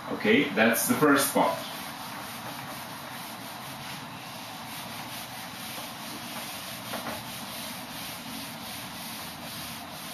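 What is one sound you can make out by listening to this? An eraser rubs against a whiteboard.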